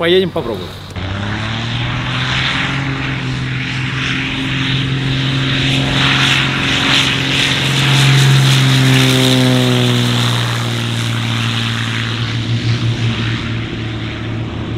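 A small propeller plane's engine drones and roars as it takes off.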